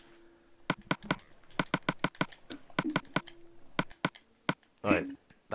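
Menu clicks tick rapidly in a video game.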